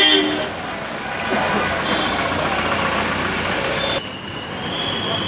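An ambulance van rolls slowly past with its engine running.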